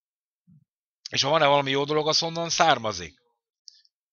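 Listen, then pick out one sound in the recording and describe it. An elderly man speaks with animation into a nearby microphone.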